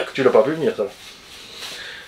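A man blows his nose into a tissue.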